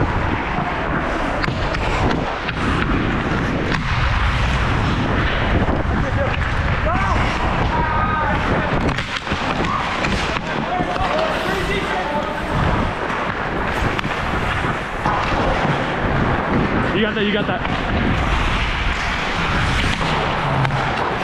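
Hockey sticks clack against the ice and a puck.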